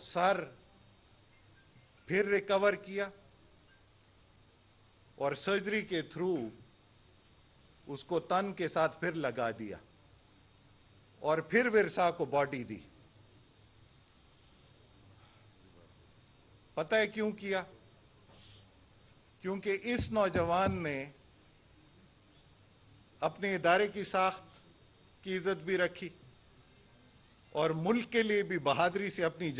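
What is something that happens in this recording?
A middle-aged man speaks into a microphone in measured bursts with pauses.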